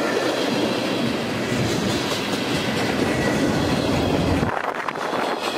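A freight train rumbles past close by and is gone.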